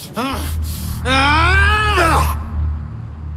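A young man shouts angrily.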